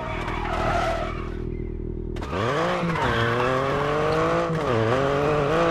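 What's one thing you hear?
Tyres skid and crunch on gravel.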